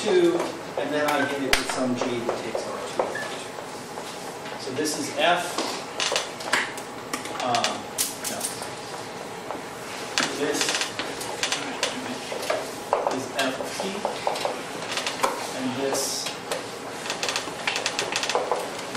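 A man lectures calmly in a room with some echo.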